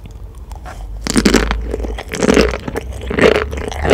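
A woman chews wetly, close to a microphone.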